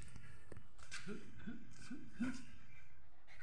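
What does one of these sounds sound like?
A dog grunts and growls playfully.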